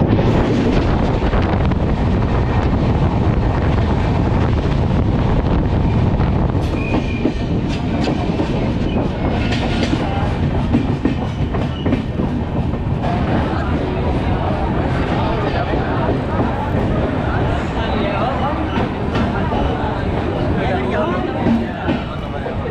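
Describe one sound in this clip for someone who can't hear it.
A train rumbles and clatters along the tracks.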